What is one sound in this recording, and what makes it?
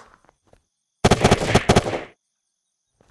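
A rapid burst of gunfire rings out.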